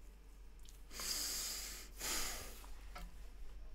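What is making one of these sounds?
A man breathes out heavily into a microphone.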